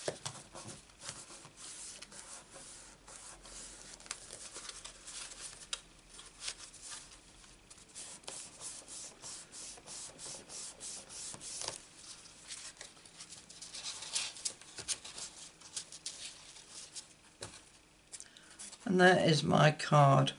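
Paper cards tap and click as they are handled.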